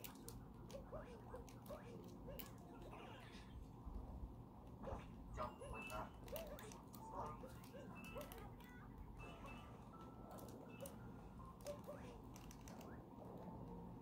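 Video game music plays with bright, quick notes.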